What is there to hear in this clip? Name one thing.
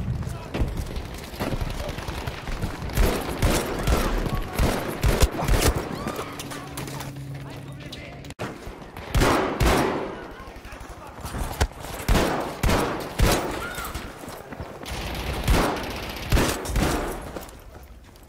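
Rapid gunshots crack in short bursts.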